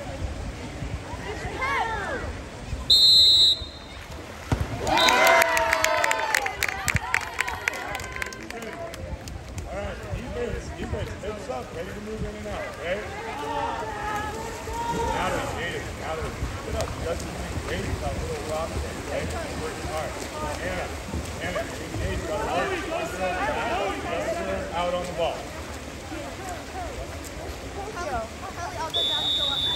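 Spectators shout and cheer from around the pool, outdoors.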